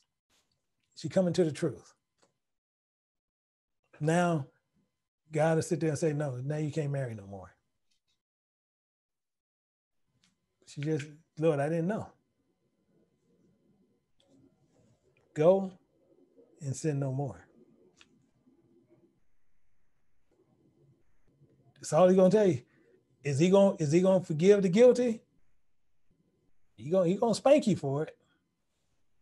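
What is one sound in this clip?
A middle-aged man speaks with animation over an online call, in short bursts with pauses.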